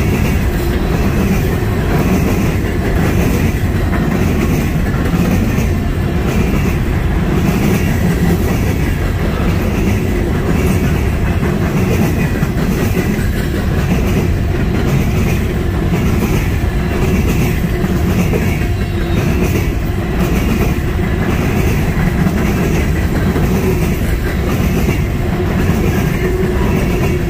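Steel wheels clatter rhythmically over rail joints.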